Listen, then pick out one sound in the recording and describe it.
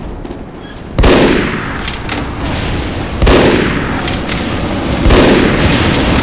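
Gunshots from a rifle crack loudly.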